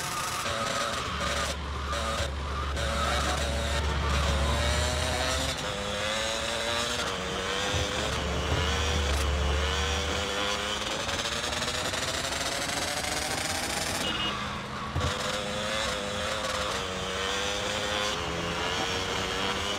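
A motorbike engine whines steadily, rising in pitch as it speeds up.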